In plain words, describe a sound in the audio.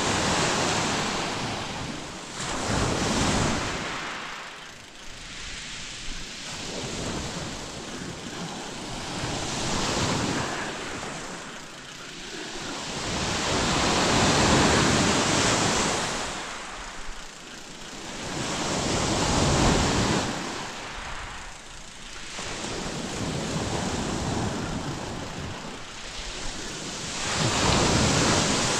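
Waves wash onto a shore in slow, rolling surges.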